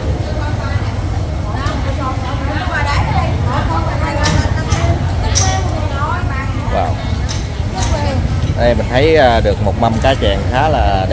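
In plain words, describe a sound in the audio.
A low rumble of a busy crowd fills the air.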